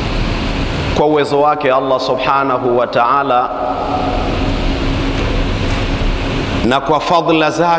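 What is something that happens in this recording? A man speaks with a steady, chanting voice through a microphone.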